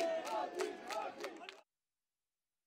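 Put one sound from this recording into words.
A crowd of men cheers and chants outdoors.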